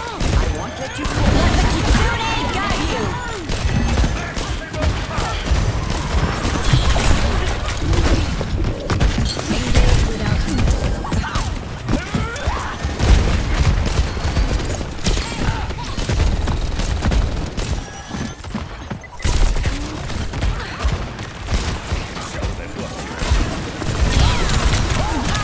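Gunfire and explosions crackle and boom in a fast game battle.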